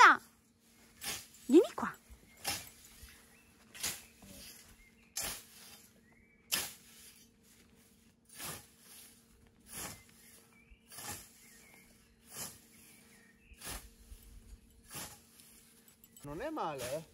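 A scythe swishes through tall grass in steady, rhythmic strokes.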